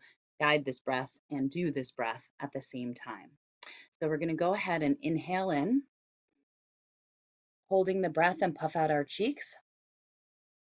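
A woman talks with animation through a webcam microphone.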